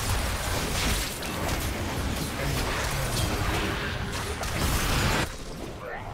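Game spells and weapons clash and burst in a fast, noisy fight.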